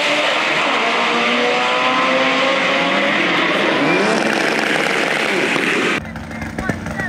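A race car engine roars loudly as it speeds down a drag strip.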